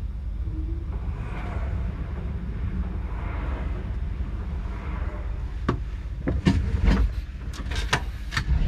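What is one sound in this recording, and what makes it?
Another train rushes past close alongside with a loud whoosh.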